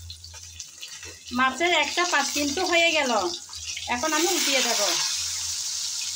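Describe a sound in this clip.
A wooden spatula scrapes and nudges food in a pan.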